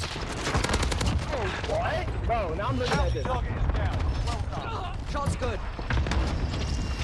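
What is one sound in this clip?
A young man talks excitedly into a headset microphone.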